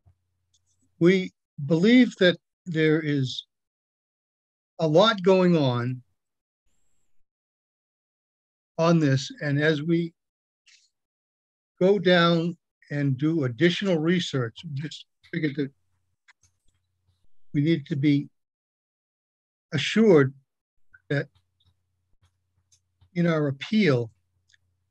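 An older man speaks calmly in short phrases over an online call.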